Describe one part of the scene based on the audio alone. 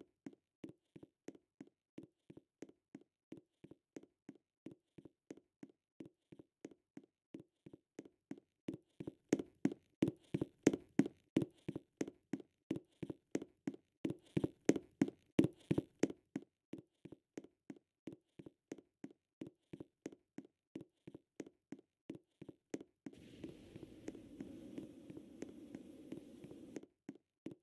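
A video game character's footsteps patter quickly on stone.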